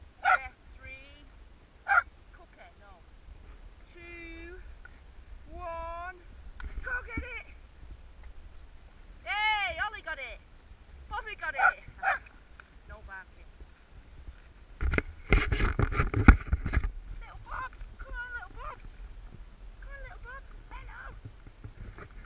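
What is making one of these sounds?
Dogs yelp and whine excitedly nearby.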